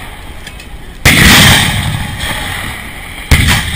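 Artillery guns fire with loud booming blasts outdoors.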